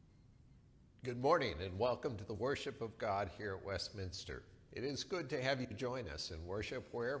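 An older man speaks calmly and slowly into a microphone.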